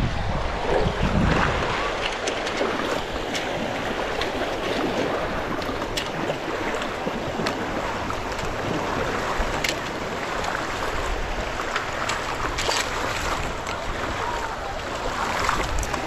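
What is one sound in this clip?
Water sloshes and splashes steadily as wheels push through shallow water.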